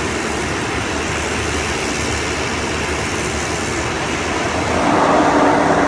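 A small plane's engines drone closer and grow louder.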